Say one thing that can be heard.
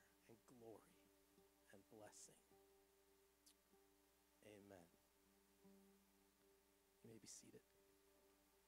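A man reads aloud quietly into a microphone, heard faintly.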